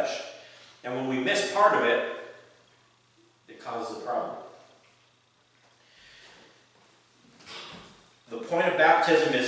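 A middle-aged man speaks with animation in a slightly echoing room, pausing between phrases.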